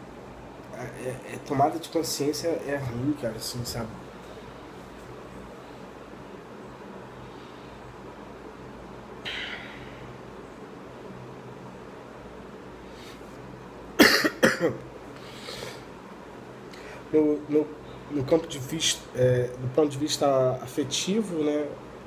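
A young man talks casually, close to a phone microphone.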